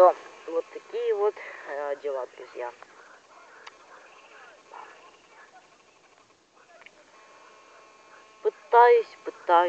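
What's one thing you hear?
A teenage boy talks close to the microphone with animation.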